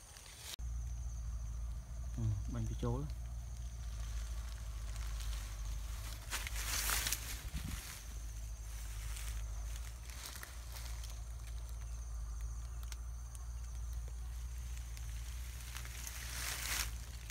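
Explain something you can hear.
A plastic tube scrapes and rustles against tree bark close by.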